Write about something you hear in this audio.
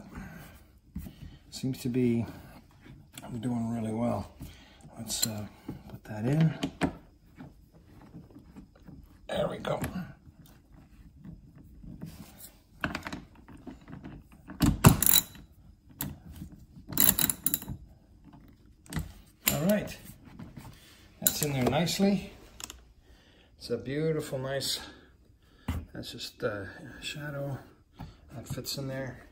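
Plastic trim creaks and clicks as it is bent by hand.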